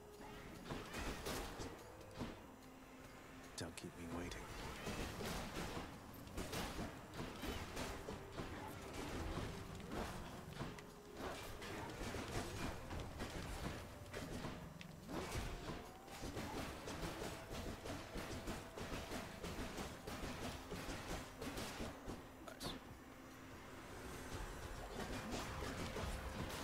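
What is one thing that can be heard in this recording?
Video game music and battle effects play.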